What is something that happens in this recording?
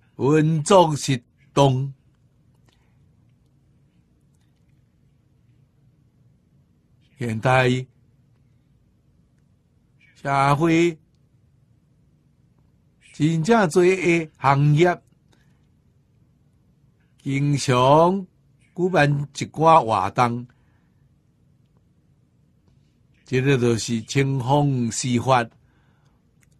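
An elderly man speaks calmly into a close microphone, in short phrases with long pauses.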